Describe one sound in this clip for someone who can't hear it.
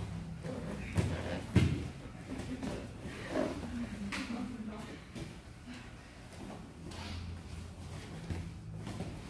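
Bodies shift and thud on a padded mat during grappling.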